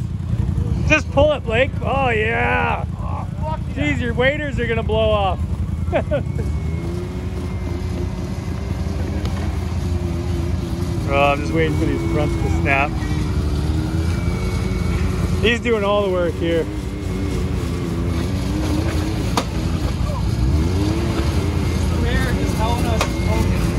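An off-road vehicle's engine rumbles low and revs.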